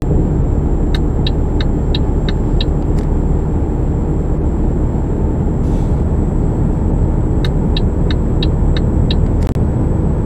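A turn signal ticks rapidly in the cab.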